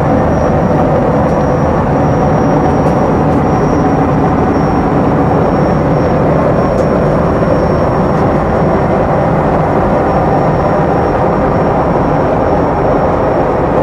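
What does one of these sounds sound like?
A plane's engines drone steadily and loudly.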